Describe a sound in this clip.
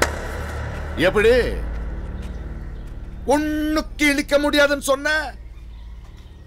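An older man shouts angrily nearby.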